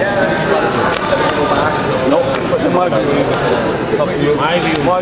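A crowd of men and women talks and shouts in an echoing hall.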